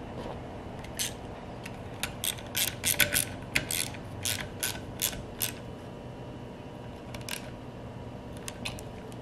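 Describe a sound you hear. A screwdriver clicks and scrapes against metal parts.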